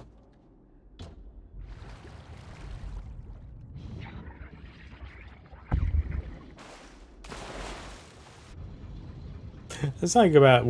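A man talks quietly into a microphone.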